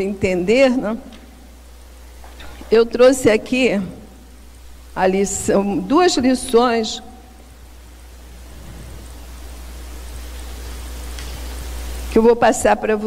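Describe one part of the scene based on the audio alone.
A middle-aged woman speaks with emphasis into a microphone, in short phrases with pauses.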